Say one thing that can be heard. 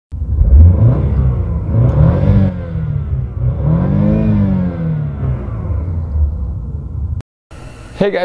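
A car engine idles and revs up and down loudly.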